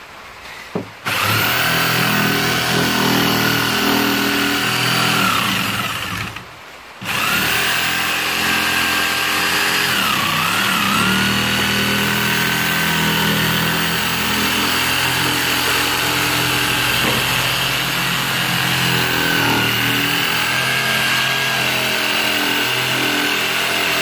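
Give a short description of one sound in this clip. An electric jigsaw buzzes loudly as it cuts through wood, stopping briefly and starting again.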